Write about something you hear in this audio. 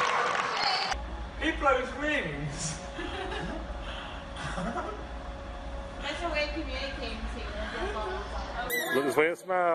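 A young person laughs excitedly close by.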